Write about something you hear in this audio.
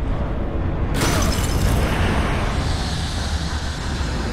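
A chest creaks open and releases a loud shimmering burst.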